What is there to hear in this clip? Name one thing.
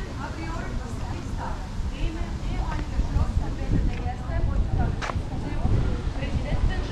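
A crowd of people chatter at a distance.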